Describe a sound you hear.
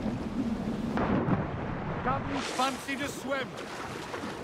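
A body plunges into water with a heavy splash.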